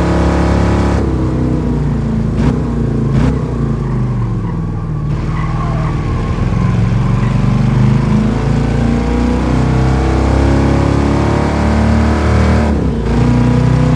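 Gears shift with a quick break in the engine's roar.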